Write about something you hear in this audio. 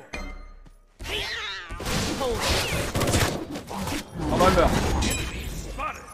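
Game weapons clash and magic effects burst during a fight.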